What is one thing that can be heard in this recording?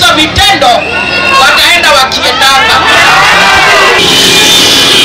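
A woman speaks forcefully into a microphone over a loudspeaker.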